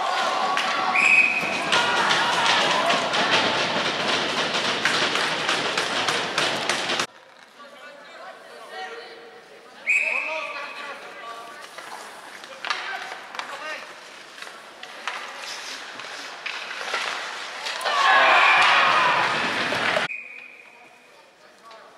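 A referee's whistle blows short, sharp blasts.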